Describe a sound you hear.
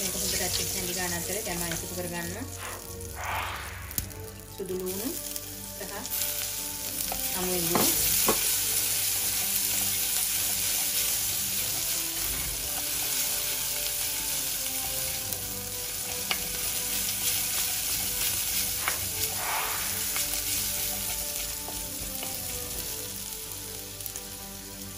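Food sizzles in hot oil in a pan.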